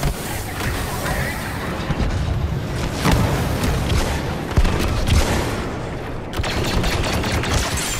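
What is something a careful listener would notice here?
Blaster shots fire rapidly in a large echoing hall.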